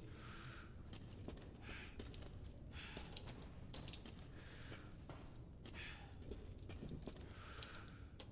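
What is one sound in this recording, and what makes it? Footsteps tap on a stone floor at a steady walking pace.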